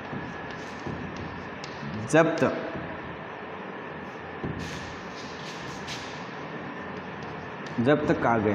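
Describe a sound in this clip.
Chalk taps and scratches on a chalkboard.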